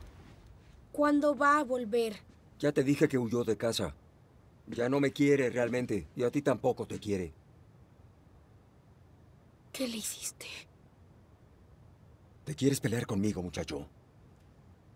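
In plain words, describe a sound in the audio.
A man speaks in a low, startled voice nearby.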